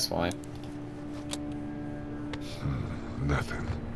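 A radio button clicks.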